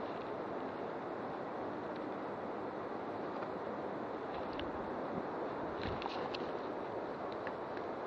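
Twigs and leaves crackle as branches are pushed aside.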